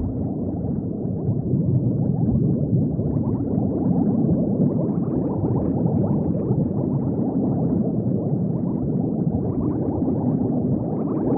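Bubbles gurgle and burble steadily underwater.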